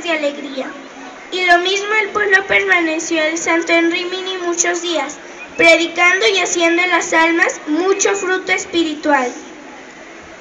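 A woman sings loudly through loudspeakers outdoors.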